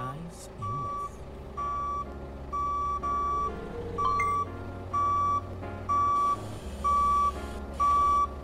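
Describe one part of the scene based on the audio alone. A forklift's reversing alarm beeps steadily and repeatedly.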